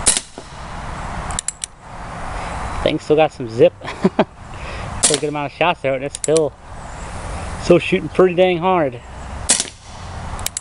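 A revolver fires loud shots outdoors, each with a short echo.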